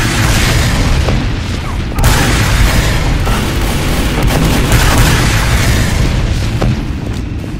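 A flamethrower roars with a loud, rushing hiss.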